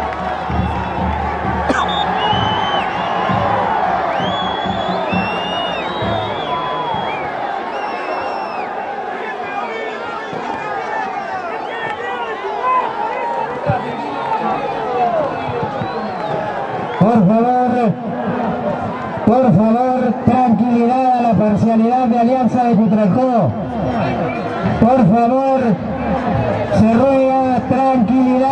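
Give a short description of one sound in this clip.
A crowd of fans shouts and jeers in an outdoor stadium.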